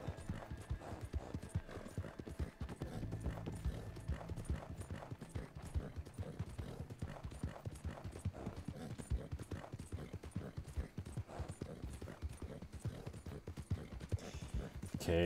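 Horse hooves thud rapidly on soft ground at a gallop.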